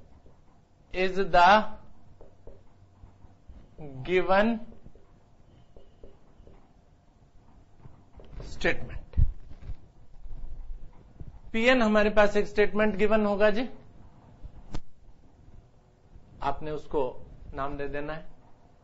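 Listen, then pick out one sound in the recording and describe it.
A middle-aged man speaks calmly into a clip-on microphone, with pauses.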